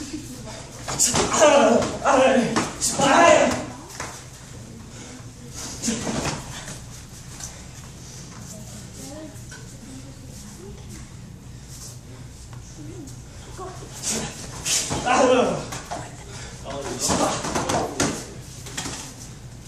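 Children shout and cheer close by in an echoing room.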